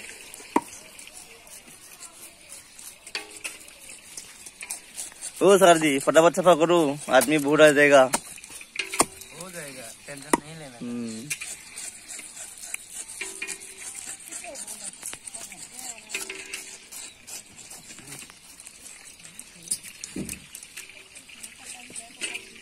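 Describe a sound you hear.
Knives scrape and tap on fish scales and bones.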